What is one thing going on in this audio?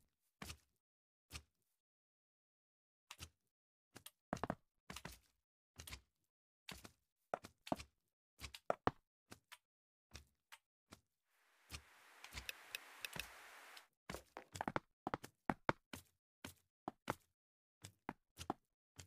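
Blocks are placed with short, soft knocks in quick succession.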